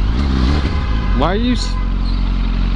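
A motorcycle engine revs up sharply.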